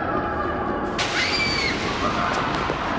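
A young girl screams in fright.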